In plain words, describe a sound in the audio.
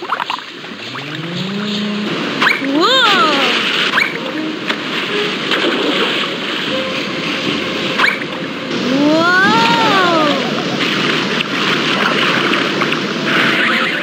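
Water rushes and splashes through rapids.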